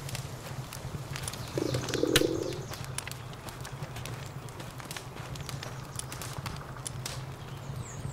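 Soft menu clicks and chimes sound as game options change.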